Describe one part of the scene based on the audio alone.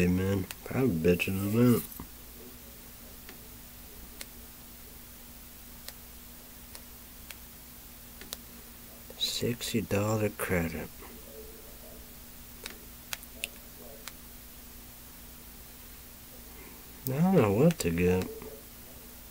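A young man speaks close by in short bursts.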